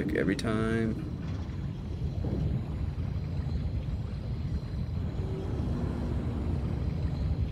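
A small submarine's motor rumbles low and steadily underwater.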